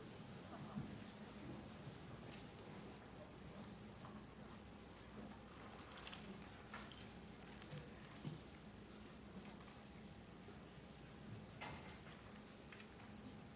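A crowd of children and adults murmurs quietly in an echoing hall.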